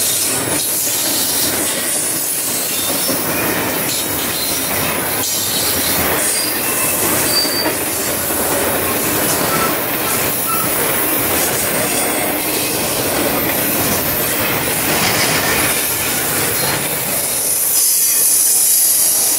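A double-stack intermodal freight train rumbles past close by.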